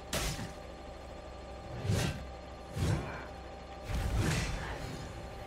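Sword blows and heavy thuds ring out in bursts from a game.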